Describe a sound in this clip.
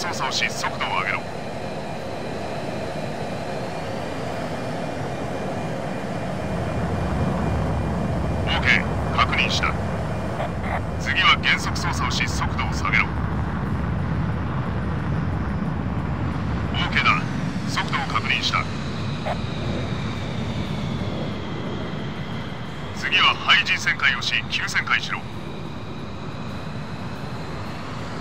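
A jet engine roars steadily, growing louder for a while and then easing off.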